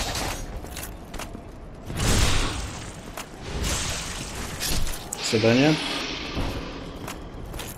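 A sword slashes and strikes with heavy thuds.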